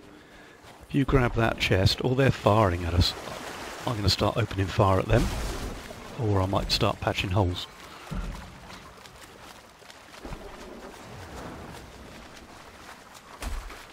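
Sea waves wash softly.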